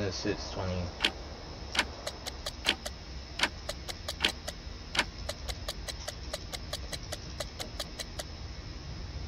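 A clock ticks quickly and steadily.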